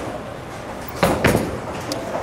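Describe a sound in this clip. A bowling ball thuds onto a lane.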